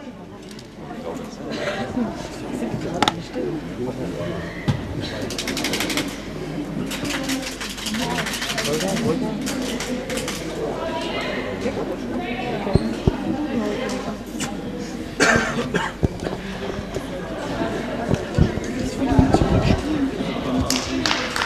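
Young women talk with one another in a large echoing hall.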